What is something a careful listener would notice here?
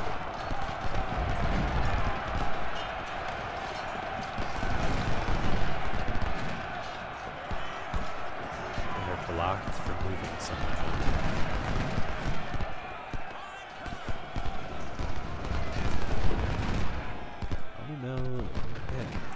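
Cannons boom in a distant battle.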